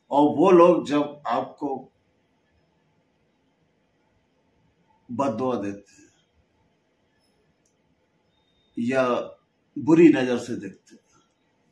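An older man speaks calmly and close by, in short phrases with pauses.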